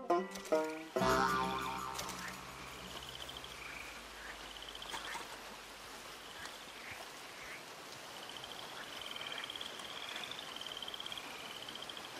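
Footsteps squelch through wet mud.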